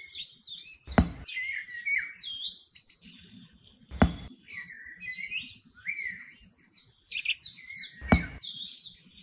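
Small clay wall pieces tap down onto a base.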